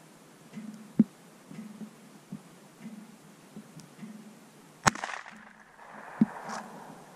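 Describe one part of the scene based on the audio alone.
Gunshots crack outdoors, some distance away, with a short echo.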